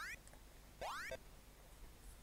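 A short electronic beep slides down in pitch.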